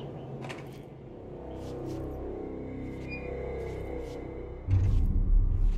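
An elevator door slides open with a low rumble.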